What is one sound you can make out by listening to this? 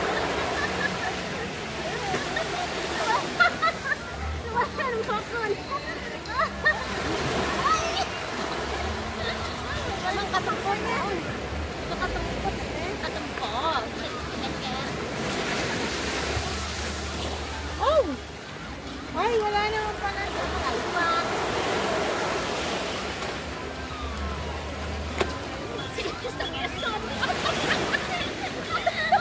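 Small waves wash up on a sandy shore.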